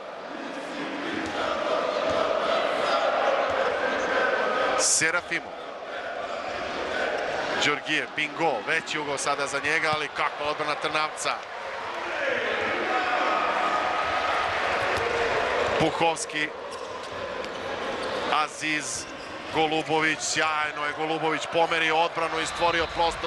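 A crowd chants and cheers in a large echoing hall.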